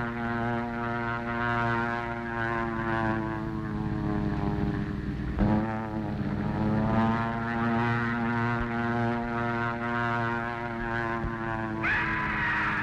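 A propeller plane's engine drones steadily overhead.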